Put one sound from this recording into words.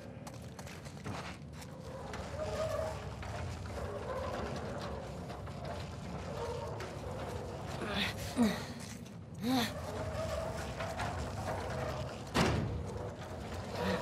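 A metal cart rolls and scrapes heavily across a stone floor.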